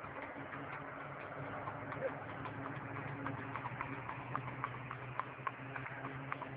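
A horse's hooves clop rapidly on pavement.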